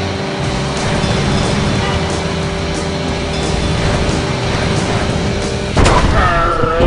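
A motorcycle engine roars at high speed.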